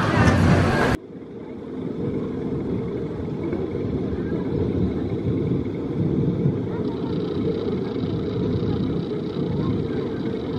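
A roller coaster train clanks slowly up a lift hill.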